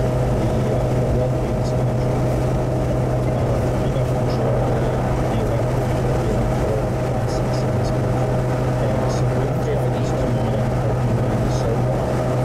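A car engine hums steadily from inside the cabin at highway speed.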